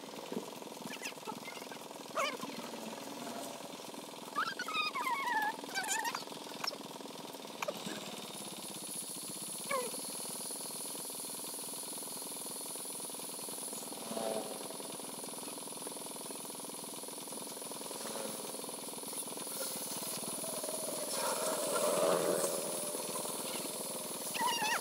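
A band saw motor hums steadily.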